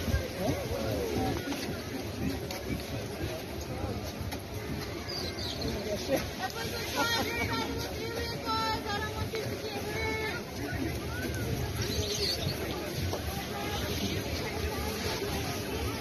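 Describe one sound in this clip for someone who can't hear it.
A crowd of adults and children chatters outdoors.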